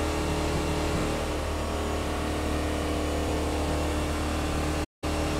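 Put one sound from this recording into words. A car engine hums steadily at speed, rising slightly in pitch.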